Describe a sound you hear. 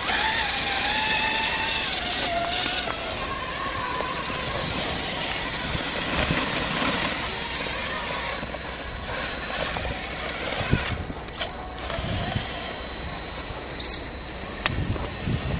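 Rubber tyres scrape and grip on rock.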